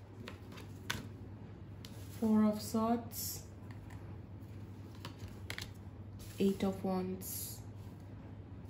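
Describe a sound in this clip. Playing cards tap softly onto a table.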